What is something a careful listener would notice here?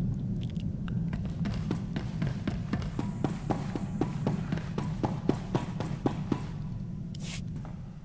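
Footsteps clank quickly on a metal floor.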